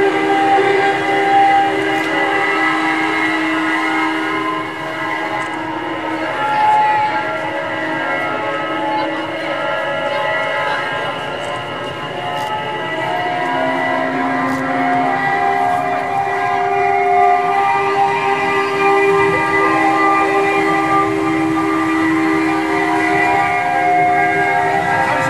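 Piano strings ring in long, overlapping humming drones.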